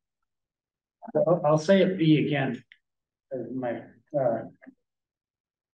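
A man speaks calmly over a meeting microphone.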